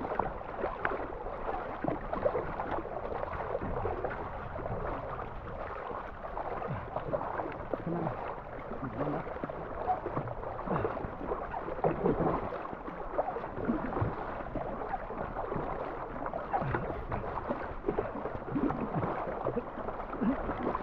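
River water rushes and gurgles steadily.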